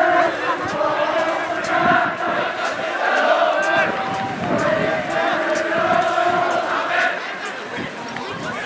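Young women shout to each other in the distance outdoors.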